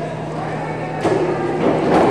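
A diving board thumps as a diver springs off it.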